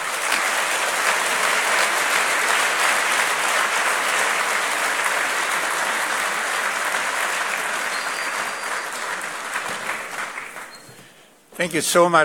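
An audience applauds in a large hall, the applause slowly fading.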